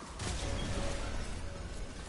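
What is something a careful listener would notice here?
An energy beam hums and crackles.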